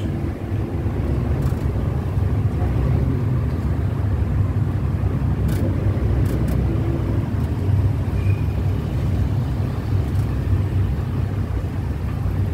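A car engine hums close by as the car drives along.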